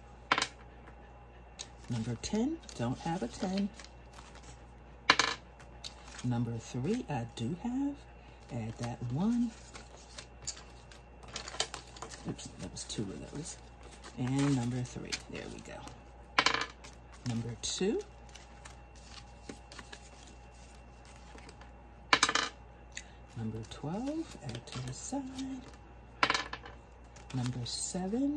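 Paper bills rustle and crinkle as they are counted by hand.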